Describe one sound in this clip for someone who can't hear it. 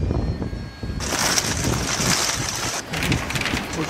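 Rain patters on a roof window.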